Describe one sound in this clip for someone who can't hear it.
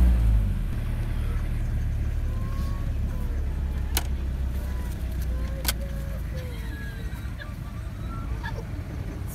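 A vehicle engine rumbles low and steady as it drives slowly.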